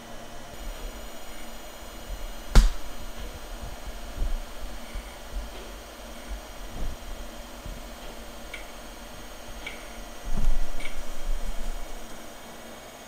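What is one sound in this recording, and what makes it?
A computer hard drive whirs and rattles as it works.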